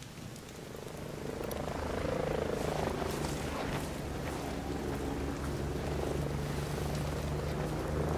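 A helicopter drones overhead with a steady thudding hum.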